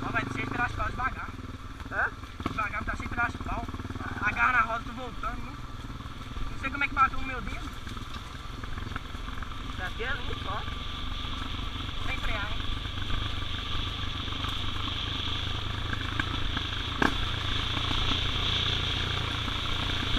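Tyres crunch and rattle over a dirt track.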